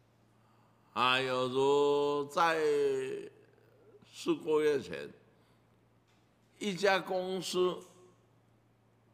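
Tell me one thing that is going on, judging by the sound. An elderly man speaks calmly, in measured phrases, through a microphone.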